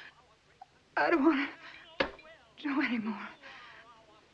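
A woman sobs and speaks in a tearful, breaking voice close by.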